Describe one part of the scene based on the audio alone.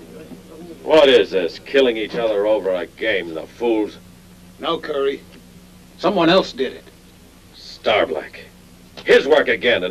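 A man speaks sharply and with anger, close by.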